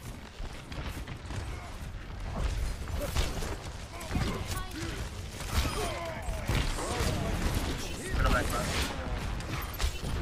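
A bow twangs as arrows are fired.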